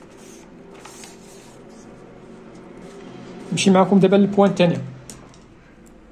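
A sheet of paper rustles as it is laid down.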